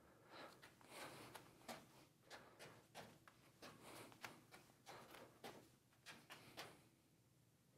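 Juggling balls smack softly into a man's hands.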